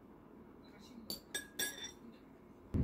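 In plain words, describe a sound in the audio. A metal fork clinks against a ceramic bowl.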